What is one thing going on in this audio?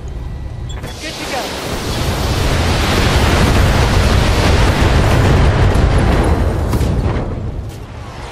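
Heavy weapons fire and explosions boom and roar against a large machine.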